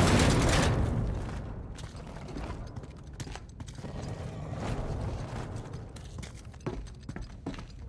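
Footsteps patter on a stone floor.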